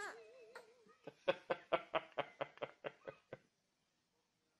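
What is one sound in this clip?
A baby laughs in short bursts.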